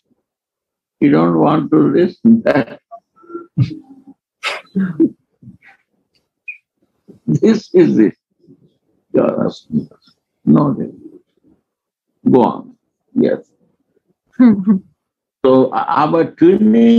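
An elderly man speaks calmly and expressively, heard through a microphone in an online call.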